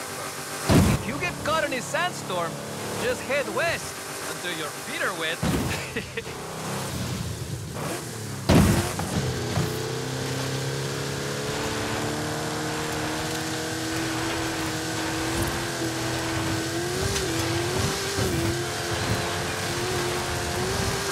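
An engine roars loudly and revs up and down.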